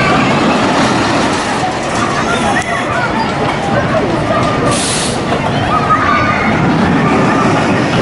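Riders chatter and call out on a passing ride.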